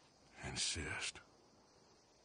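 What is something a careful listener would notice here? A man speaks calmly in a low, gruff voice.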